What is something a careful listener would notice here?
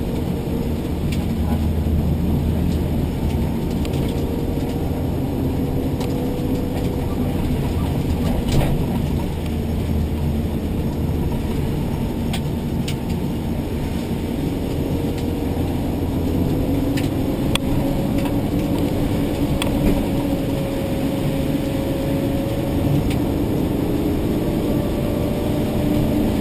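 Tyres hiss over a wet road.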